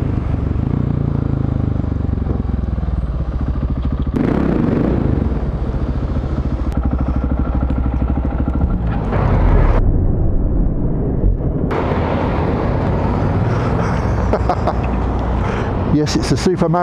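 A motorcycle engine rumbles steadily and revs up and down while riding.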